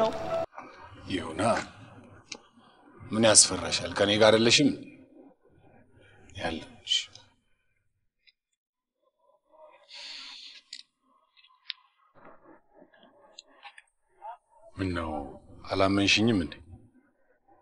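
A man speaks with feeling, close by.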